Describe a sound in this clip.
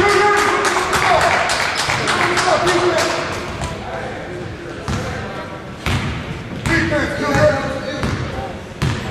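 A basketball bounces on a hardwood floor in an echoing gym.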